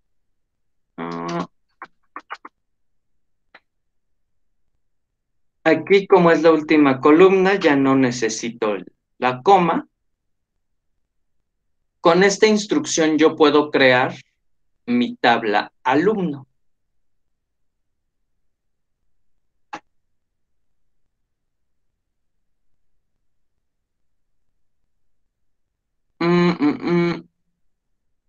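A man speaks calmly into a microphone, heard as if through an online call, with pauses.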